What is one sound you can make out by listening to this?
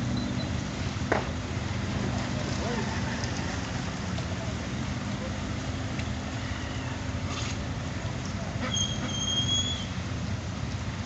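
A motorbike engine hums nearby as it rides slowly past.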